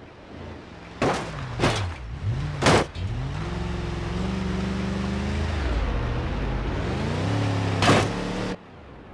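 A truck's tyres and suspension thud over rocks.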